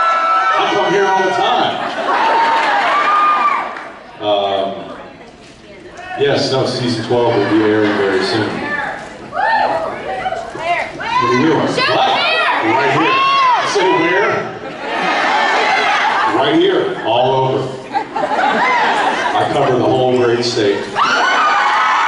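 A man speaks with animation into a microphone, heard through loudspeakers in a large hall.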